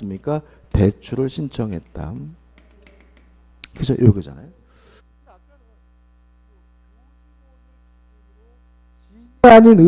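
A man lectures through a microphone, speaking with animation.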